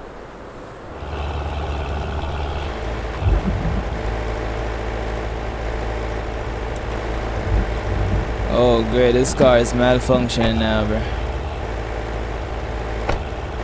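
A car engine runs with a low, steady hum.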